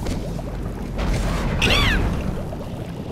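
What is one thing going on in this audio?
A magic spell whooshes and ends in a ringing, warbling chime.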